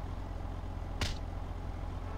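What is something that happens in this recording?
A punch lands with a dull thud.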